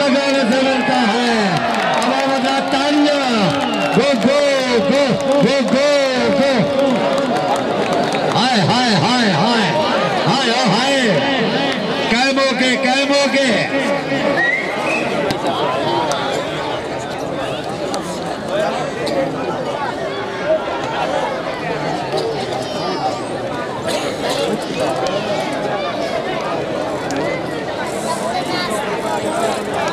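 A large outdoor crowd murmurs and chatters steadily.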